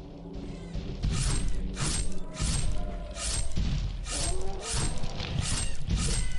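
Swords clash in a video game fight.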